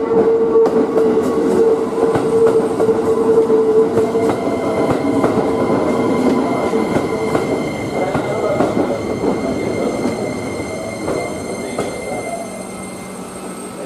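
A train rolls in with a loud rumble, slowing down.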